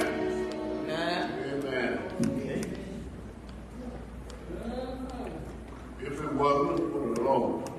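An elderly man sings into a microphone in a large echoing room.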